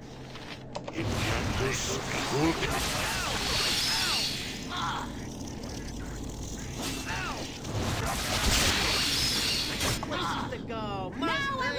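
A man speaks casually into a headset microphone.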